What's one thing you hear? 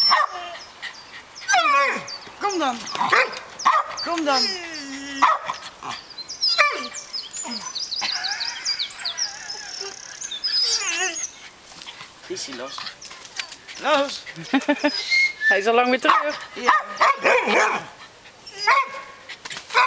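Dogs bark and whine excitedly nearby, outdoors.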